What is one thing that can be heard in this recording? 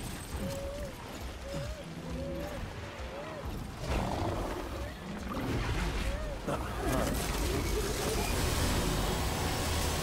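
Footsteps crunch on snow and rock.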